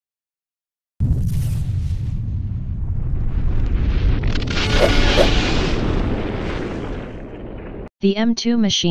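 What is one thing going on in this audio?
A deep explosion booms and rumbles, then slowly fades.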